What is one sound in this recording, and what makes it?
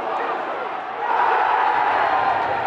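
A large stadium crowd bursts into a loud roaring cheer.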